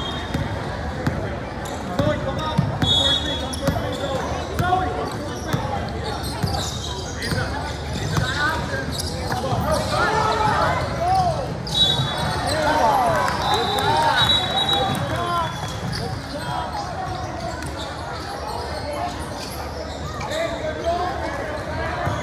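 Young girls call out to each other during play.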